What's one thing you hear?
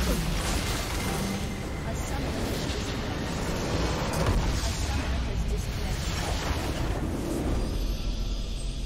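Game battle effects crash and explode loudly.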